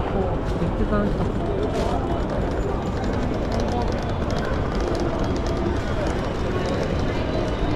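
Footsteps patter on pavement outdoors.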